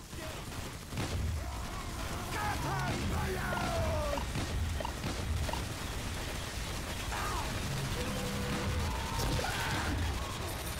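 A heavy machine gun fires in rapid, rattling bursts.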